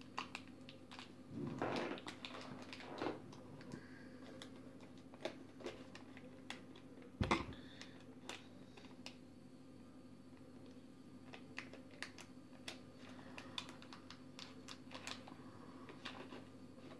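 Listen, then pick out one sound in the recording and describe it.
Small plastic pieces click and tap as they are handled.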